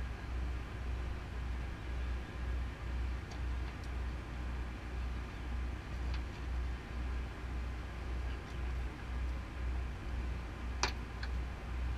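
A boat engine idles with a low, pulsing throb.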